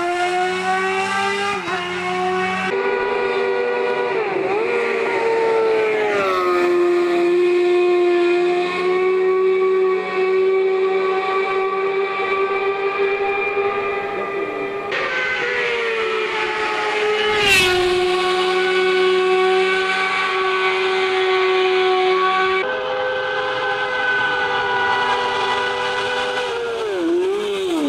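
A racing car engine screams at high revs and roars past close by, its pitch dropping as it goes.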